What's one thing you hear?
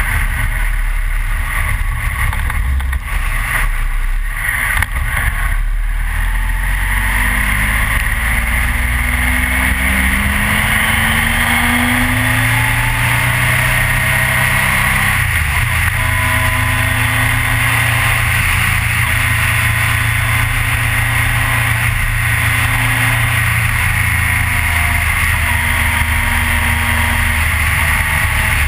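A motorcycle engine roars steadily, rising and falling in pitch as it speeds up and shifts gears.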